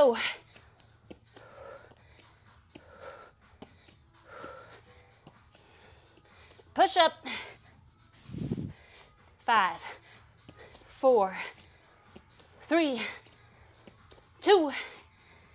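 A young woman breathes hard with effort, close by.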